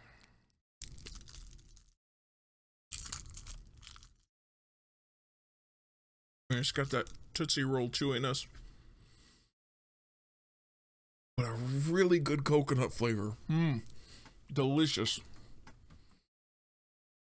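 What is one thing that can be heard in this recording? A man speaks calmly and close into a microphone, in short bursts with pauses.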